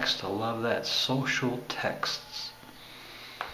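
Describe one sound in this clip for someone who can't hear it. A middle-aged man speaks calmly, close to the microphone.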